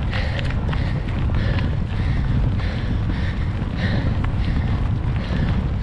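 Wind blusters outdoors with a steady low rumble.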